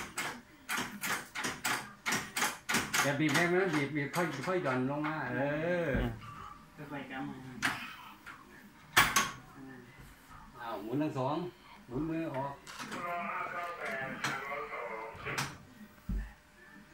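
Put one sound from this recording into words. Heavy metal levers clank and thud as they are pulled.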